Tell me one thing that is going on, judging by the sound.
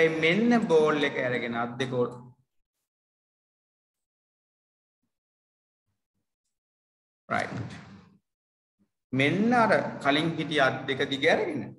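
A man speaks calmly into a microphone, explaining in pauses.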